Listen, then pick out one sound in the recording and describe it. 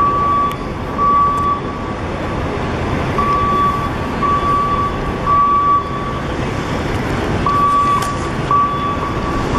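Traffic rumbles steadily along a busy city street outdoors.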